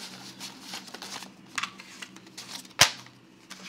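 Paper banknotes rustle as they are flicked through by hand.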